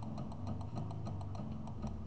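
A laser beam zaps with a buzzing crackle.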